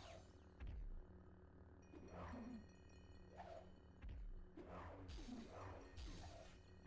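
Lightsabers hum and clash in a video game.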